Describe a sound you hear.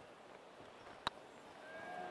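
A golf ball is tapped with a putter.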